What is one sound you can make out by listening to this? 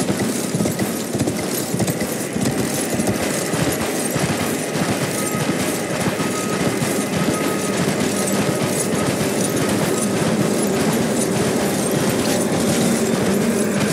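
Hooves thud steadily as a horse gallops over the ground.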